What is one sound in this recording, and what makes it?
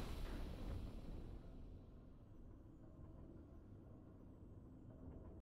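A triumphant game fanfare swells and then fades to a low rumble.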